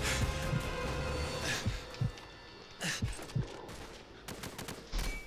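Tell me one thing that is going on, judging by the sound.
Gunfire booms in short bursts.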